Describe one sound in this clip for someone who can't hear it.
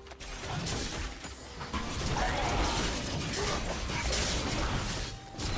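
Magic spell effects whoosh and burst in a fast fight.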